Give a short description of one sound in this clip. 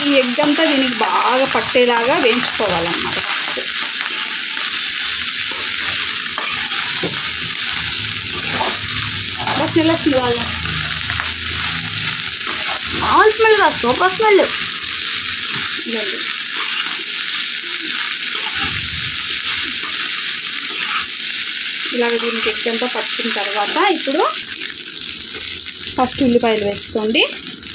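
Rice sizzles steadily in a hot pan.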